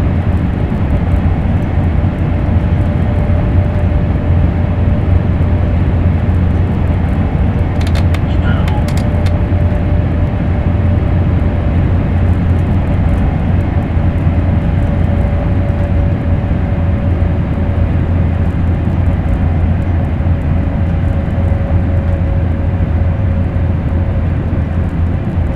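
A train rumbles steadily through a tunnel.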